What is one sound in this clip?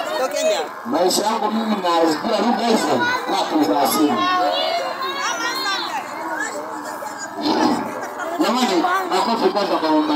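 A crowd of women and children sing and call out loudly outdoors, close by.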